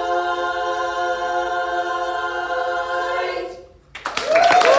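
A women's choir sings a sustained closing chord in harmony.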